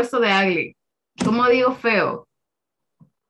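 A young woman speaks clearly through an online call.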